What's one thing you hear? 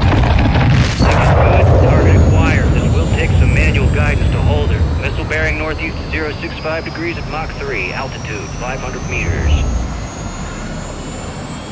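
A missile roars as it flies fast over the ground.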